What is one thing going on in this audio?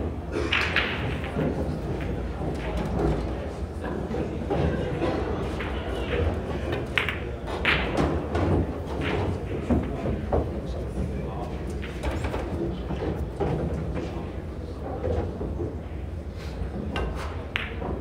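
A crowd of spectators murmurs quietly nearby.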